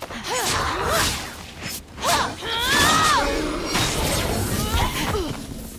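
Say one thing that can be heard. Creatures screech and cry out as they are hit.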